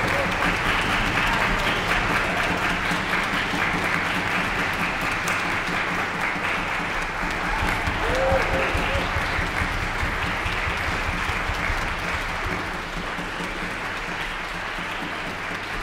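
A string orchestra plays in a large hall, echoing softly.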